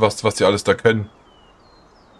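A man speaks into a microphone, close and animated.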